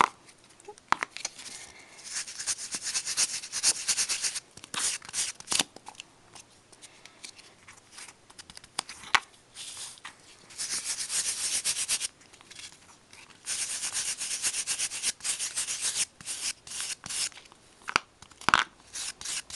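Fingers rub and scratch against paper in short bursts.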